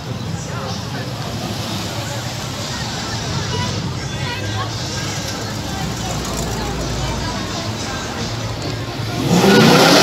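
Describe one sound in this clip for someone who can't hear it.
Car engines rumble as vehicles drive slowly past.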